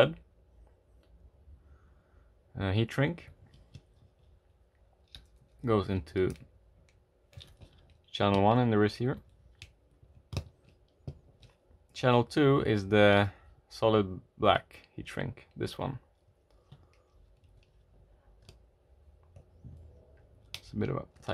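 Small plastic parts click softly as they are handled.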